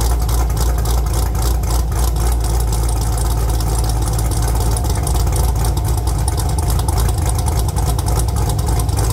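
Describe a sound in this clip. A cammed V8 engine idles with a loping rumble through the exhaust.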